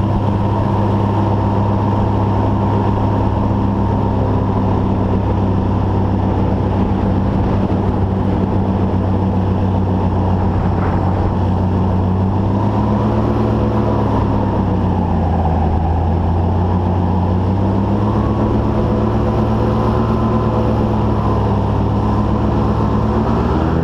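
A small motor whines loudly and steadily, its pitch dipping and rising.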